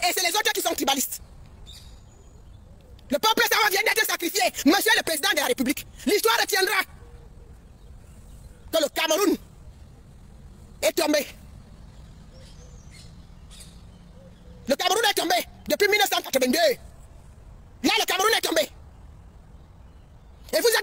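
A man shouts angrily close to a phone microphone, in short bursts with pauses.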